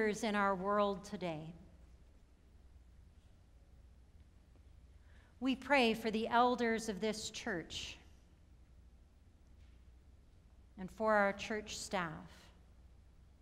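A middle-aged woman reads aloud slowly and calmly through a microphone, with pauses between phrases.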